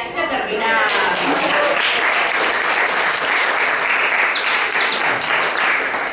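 Young children clap their hands together.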